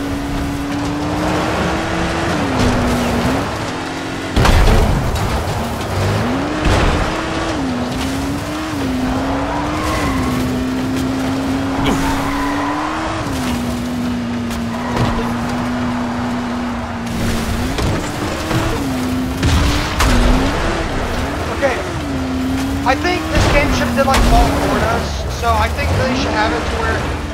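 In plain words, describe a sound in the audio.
A buggy engine drones and revs up and down throughout.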